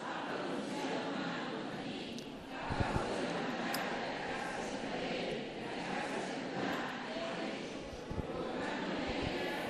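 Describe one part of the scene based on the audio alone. An elderly man chants loudly into a microphone.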